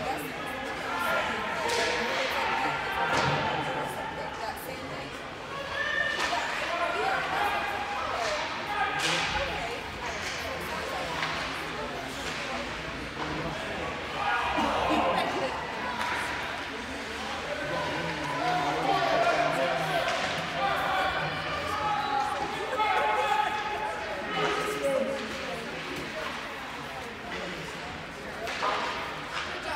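Skates scrape and hockey sticks clack on ice in the distance.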